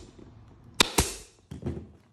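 A staple gun fires with a sharp snap.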